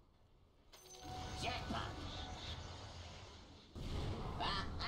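A magical blast roars and rumbles with deep booming.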